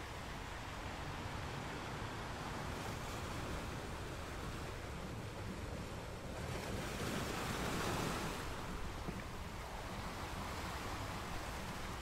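Ocean waves roll in and crash against rocks.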